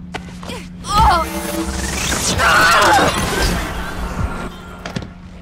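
A woman cries out in pain.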